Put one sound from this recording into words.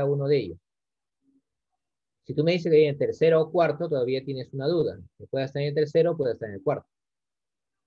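A man speaks steadily into a microphone, explaining calmly.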